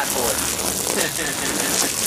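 Water sprays from a hose onto cardboard.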